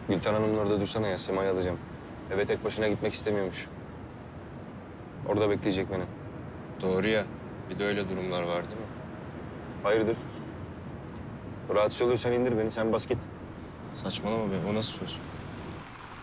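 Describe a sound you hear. A young man speaks calmly and closely.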